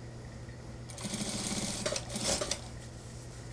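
Fabric rustles as hands move it.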